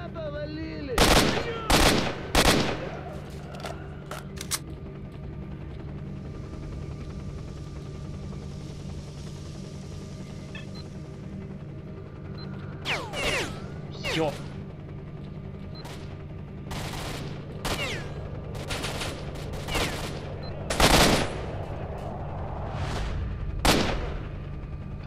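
Gunshots crack loudly in short bursts.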